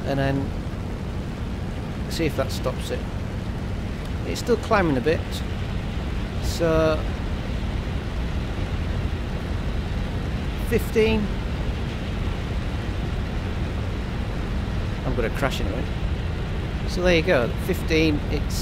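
An aircraft engine drones steadily with a low rumble.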